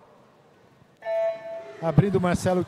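An electronic starting beep sounds once, in a large echoing hall.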